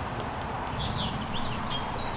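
A wood fire crackles and pops.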